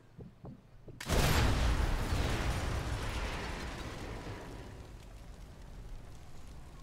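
A large explosion booms and rumbles away slowly.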